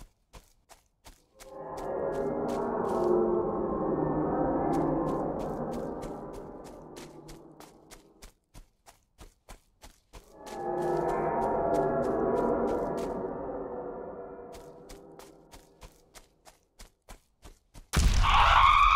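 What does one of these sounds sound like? Footsteps crunch steadily over grass and leaves.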